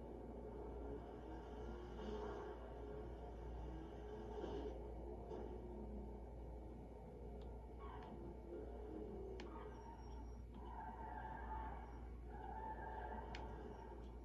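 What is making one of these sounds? A video game car engine hums steadily through television speakers.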